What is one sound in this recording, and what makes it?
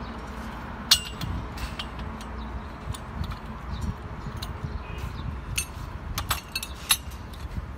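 Metal tools clink and knock against steel pipes.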